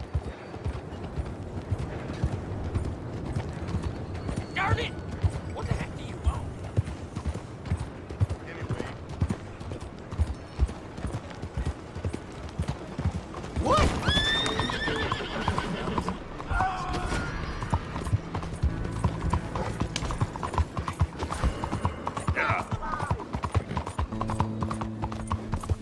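Horse hooves clop steadily on a dirt road.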